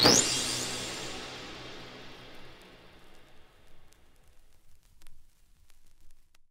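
A vinyl record crackles and pops softly as it spins.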